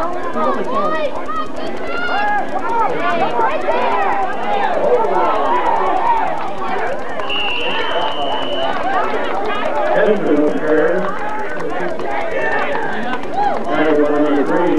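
A crowd of spectators and players chatters and shouts outdoors nearby.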